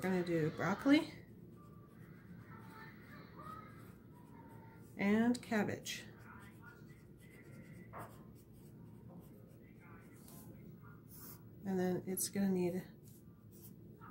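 A coloured pencil scratches softly across paper.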